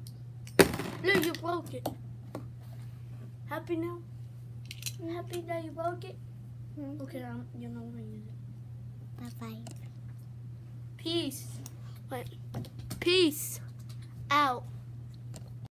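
A young child talks with excitement close by.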